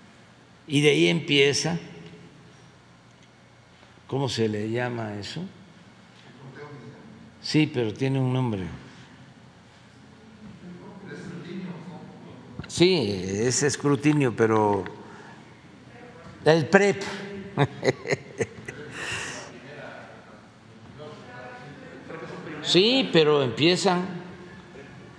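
An elderly man speaks calmly into a microphone, in bursts with pauses, in a large echoing hall.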